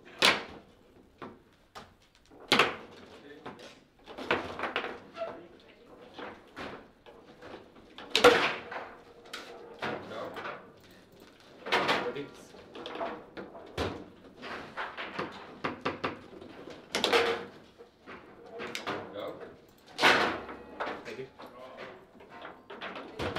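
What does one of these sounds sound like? A foosball ball knocks sharply against plastic players and the table walls.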